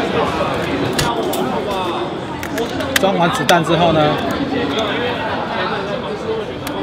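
A shotgun's mechanism clicks and clacks as it is handled.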